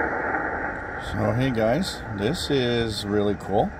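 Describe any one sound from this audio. A radio squeals and warbles as its dial is tuned.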